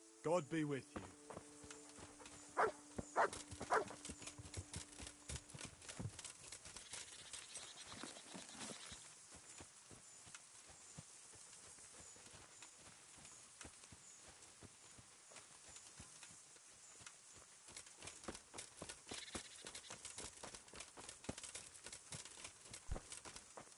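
Footsteps crunch and rustle through grass and on a dirt path.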